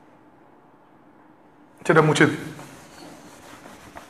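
A cloth rubs across a whiteboard.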